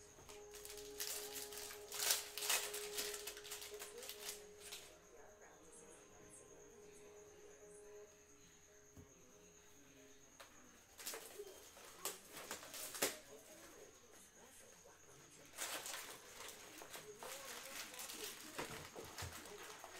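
Plastic card wrappers rustle and crinkle close by.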